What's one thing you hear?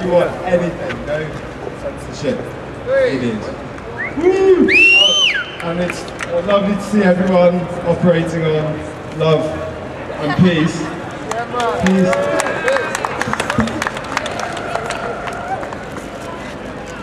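A young man speaks loudly to a crowd outdoors at night, his voice echoing off stone walls.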